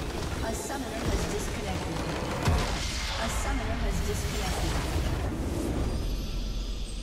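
A large structure shatters with a booming magical blast.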